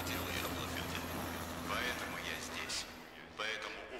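A helicopter drones overhead.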